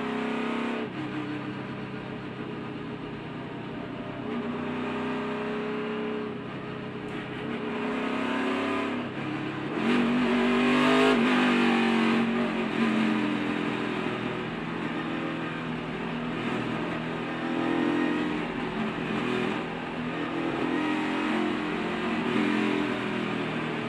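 A race car engine roars steadily at high speed, its pitch rising and falling.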